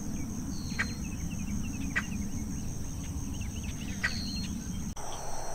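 A bird gives sharp, whistling calls again and again.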